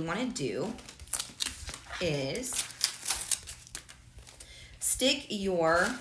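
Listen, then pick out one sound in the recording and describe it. A plastic backing sheet crinkles and rustles as it is peeled and handled.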